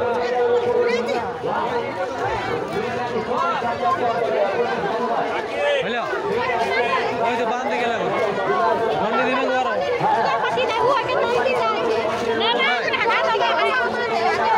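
A crowd of people chatters loudly and close by outdoors.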